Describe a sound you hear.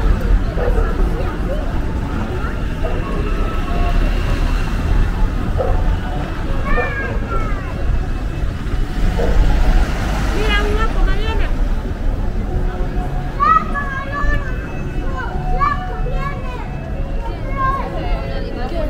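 A crowd of people chatter in a busy street outdoors.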